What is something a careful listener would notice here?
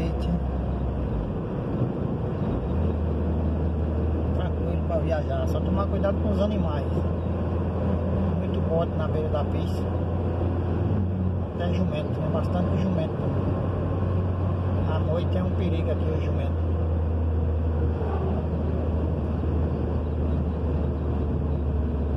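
A car engine hums steadily from inside the vehicle.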